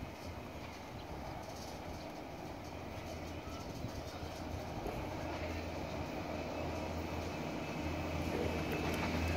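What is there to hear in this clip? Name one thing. A train rumbles on the tracks as it approaches, growing louder.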